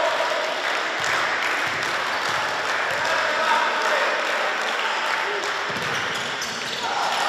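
A basketball bounces on a wooden court in a large echoing hall.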